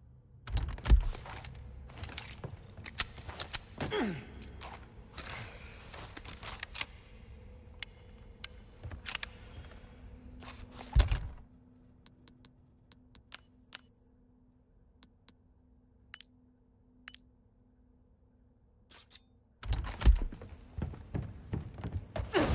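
Metal armour clanks as knights move.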